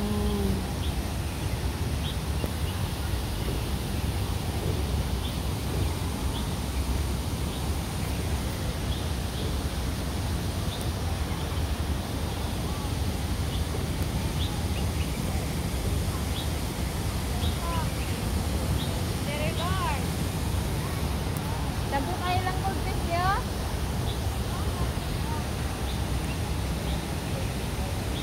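Water ripples and laps gently in a pond.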